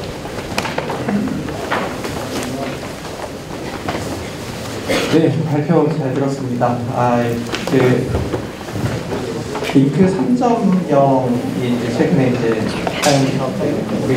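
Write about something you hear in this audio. People murmur and chat nearby in a crowded room.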